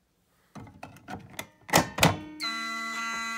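A fire alarm pull station clicks and clunks as a hand pulls it.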